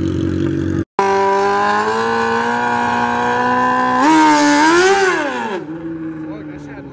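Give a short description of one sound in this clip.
A motorcycle engine revs hard and speeds away.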